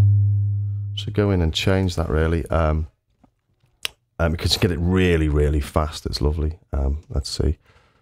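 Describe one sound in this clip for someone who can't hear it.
A synthesizer plays short warbling bass notes with sweeping, bubbling tones.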